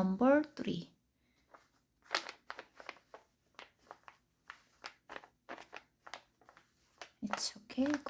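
Hands rustle and slide crocheted fabric over paper.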